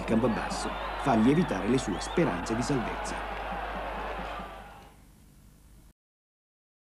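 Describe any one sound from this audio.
A stadium crowd cheers and roars.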